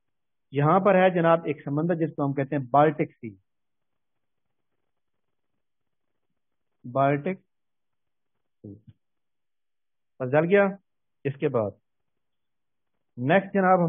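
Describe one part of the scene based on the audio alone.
A man explains calmly, heard through an online call, in short bursts with pauses.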